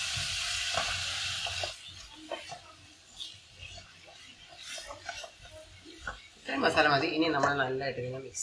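A wooden spatula scrapes and stirs food in a metal pan.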